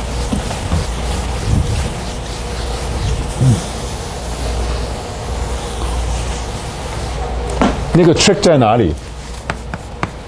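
A cloth eraser rubs briskly across a board.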